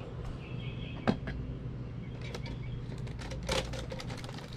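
Metal utensils scrape and clink against a bowl.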